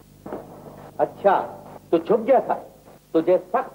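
A man speaks sharply and loudly.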